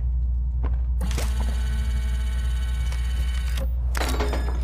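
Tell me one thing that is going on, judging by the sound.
An electronic scanner buzzes with a steady, pulsing tone.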